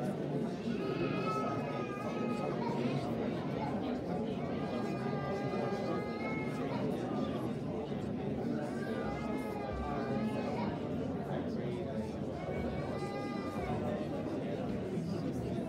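A congregation sings slowly together in an echoing hall.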